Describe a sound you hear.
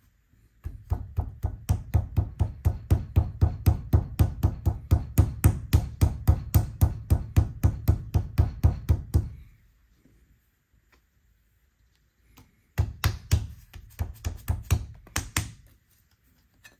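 A hand slaps rapidly on soft clay on a hard surface.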